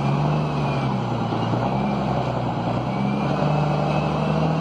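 A truck engine's revs dip and rise again as it changes gear.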